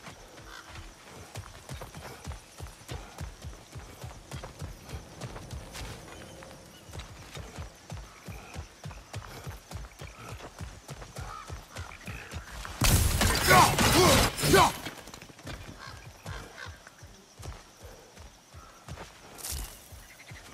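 Heavy footsteps crunch steadily on dry gravel.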